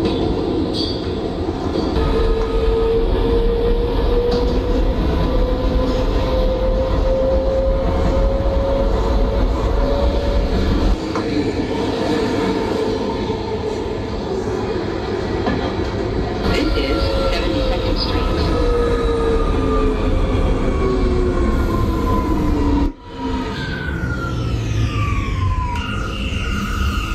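A subway train rumbles along the track.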